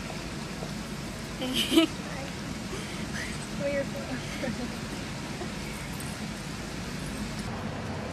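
A young woman laughs and talks nearby.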